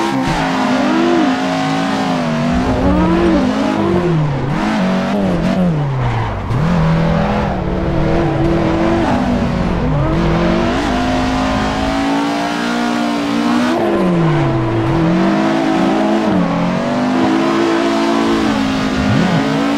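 A car engine revs hard, rising and falling as gears change.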